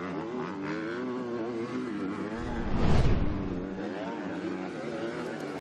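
A motorcycle engine revs loudly, rising and falling in pitch.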